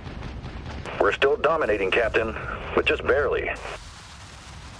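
A man speaks briefly through a radio.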